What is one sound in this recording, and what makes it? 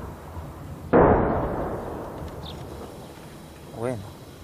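A loud explosion booms nearby and rumbles away.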